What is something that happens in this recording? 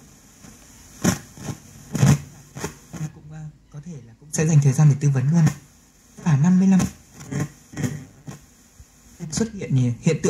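A radio crackles and jumps between snatches of stations as its tuning knob turns.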